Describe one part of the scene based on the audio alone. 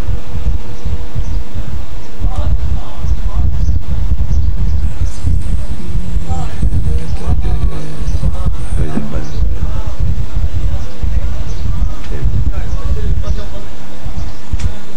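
An elderly man speaks calmly into a microphone, heard through loudspeakers.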